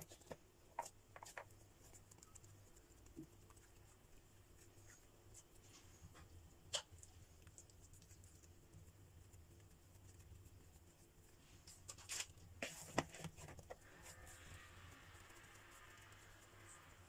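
Hands softly pat and press dough.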